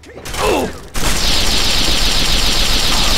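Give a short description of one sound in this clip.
A heavy gun fires in a rapid, continuous burst.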